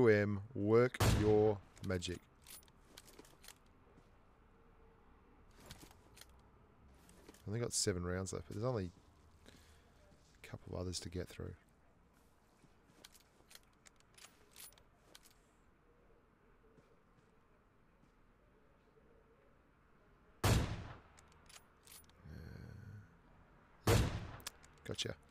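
A rifle fires loud single shots that crack and echo.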